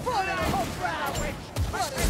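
A gun fires a loud blast.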